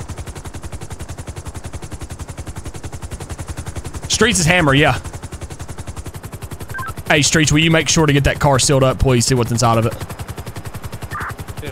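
Helicopter rotor blades thud rapidly and steadily throughout.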